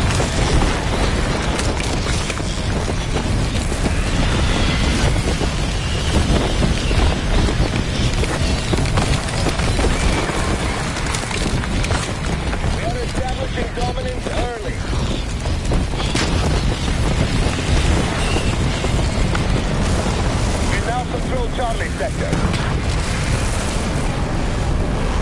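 Wind roars loudly and steadily, as in free fall.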